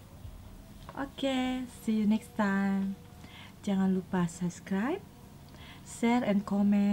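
A young woman talks close to a microphone in a friendly, animated voice.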